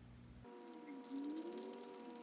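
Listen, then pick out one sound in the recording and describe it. Small metal pellets rattle as they pour.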